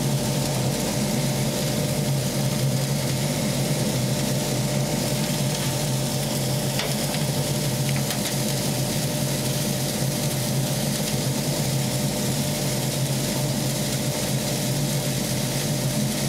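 Sawdust hisses and patters as it swirls inside a metal bin.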